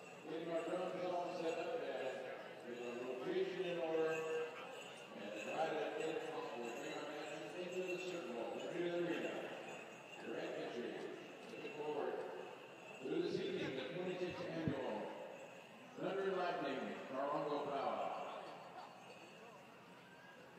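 A man sings loudly over a loudspeaker in a large echoing hall.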